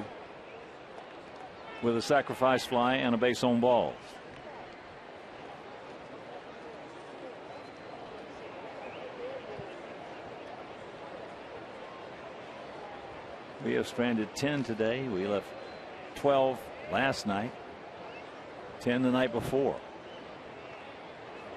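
A crowd murmurs softly outdoors.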